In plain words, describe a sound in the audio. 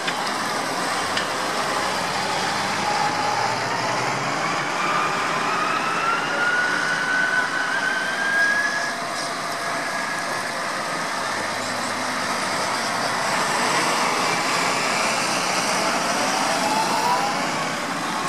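A column of tractor engines rumbles steadily as the tractors drive past one after another.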